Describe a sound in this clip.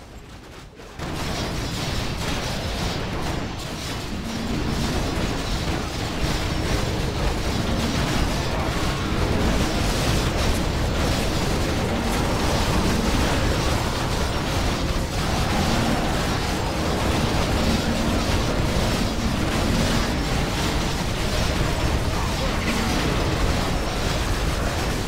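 Weapons clash and strike in a loud, busy battle.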